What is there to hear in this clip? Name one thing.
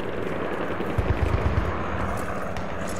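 Footsteps thud slowly on stone steps.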